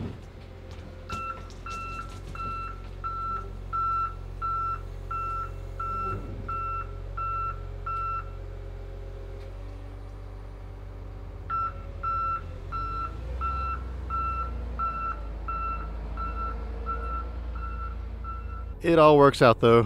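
A loader's engine rumbles steadily.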